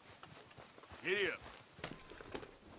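A horse snorts and whinnies.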